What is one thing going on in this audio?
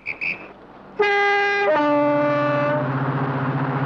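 A diesel locomotive horn blares loudly.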